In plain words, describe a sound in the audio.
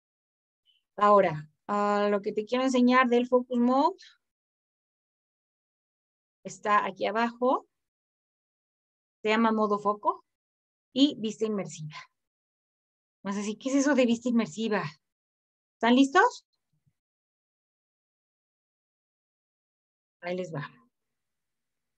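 A young woman speaks calmly through an online call microphone.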